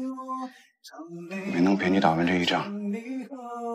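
A man speaks quietly and sadly.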